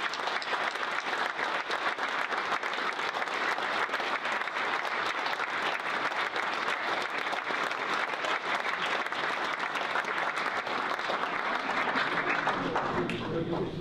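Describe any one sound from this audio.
An audience applauds loudly and steadily in a large room, then stops.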